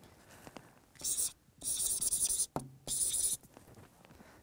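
A marker squeaks on a whiteboard in short strokes.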